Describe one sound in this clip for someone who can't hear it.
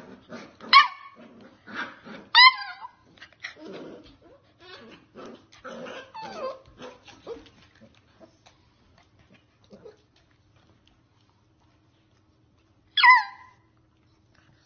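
Puppies yip and whine excitedly close by.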